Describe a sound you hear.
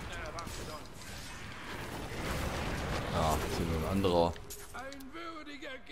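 Electric crackles and zaps sound from a lightning spell.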